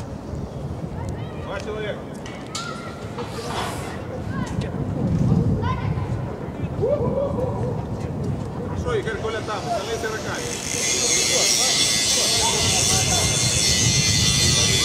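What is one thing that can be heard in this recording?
Young women players call out to each other across an open field.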